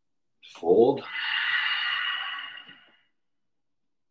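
A man breathes out audibly.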